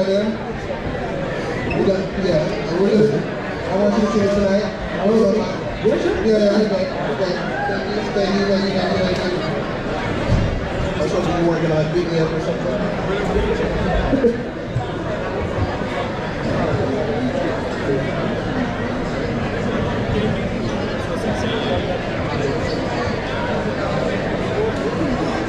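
A guitarist strums an electric guitar.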